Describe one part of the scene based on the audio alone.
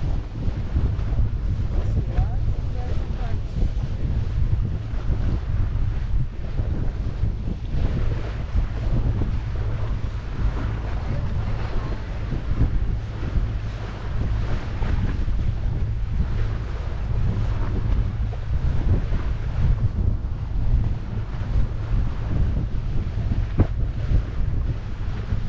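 A boat's engine drones steadily.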